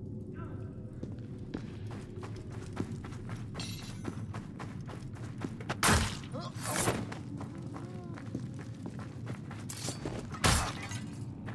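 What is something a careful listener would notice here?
Footsteps tread quickly on stone.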